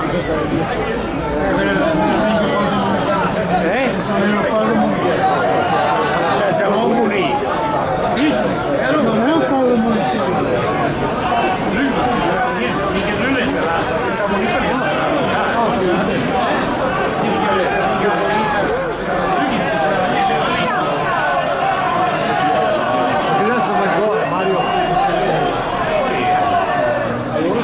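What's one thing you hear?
A crowd of spectators chatters and calls out across an open-air stadium.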